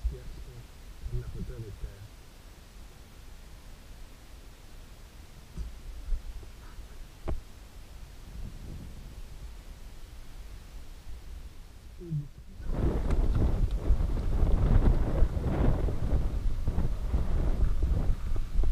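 Bicycle tyres crunch and rattle over a rocky dirt trail.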